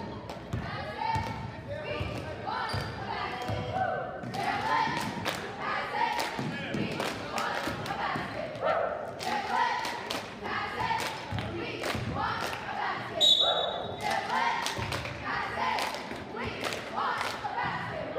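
A basketball bounces on a hard gym floor.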